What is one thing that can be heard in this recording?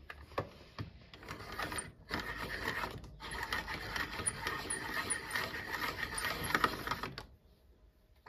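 A hand-cranked pencil sharpener grinds away at a pencil.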